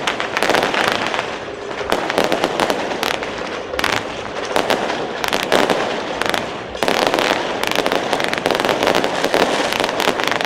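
Firecrackers crackle and bang in rapid bursts, close by and outdoors.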